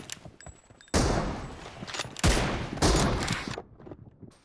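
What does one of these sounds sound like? An automatic rifle fires rapid shots in a video game.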